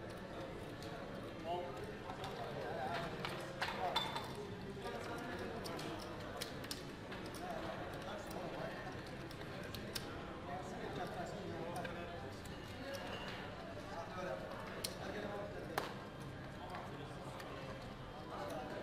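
Casino chips click and clatter as they are stacked and placed.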